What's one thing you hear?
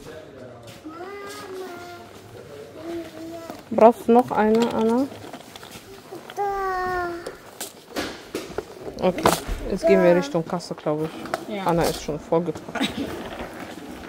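A small child babbles and speaks in a high voice close by.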